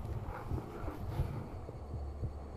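A fishing rod rustles as it is handled close by.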